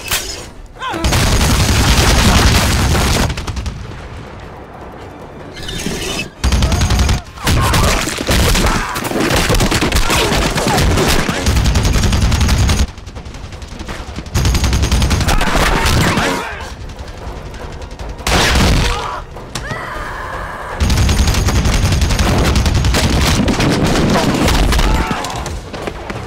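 A heavy machine gun fires in long, loud bursts.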